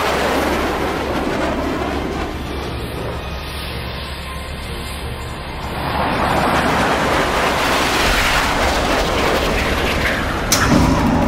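Jet engines roar loudly as fighter planes fly past overhead.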